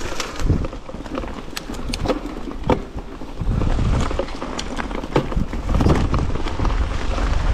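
A bicycle rattles and clicks over bumps on a trail.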